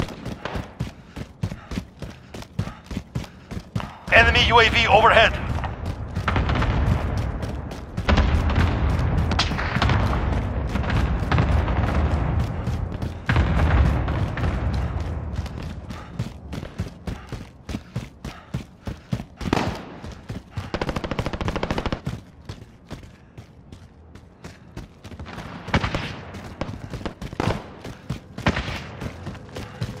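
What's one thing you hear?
Footsteps run across a hard floor.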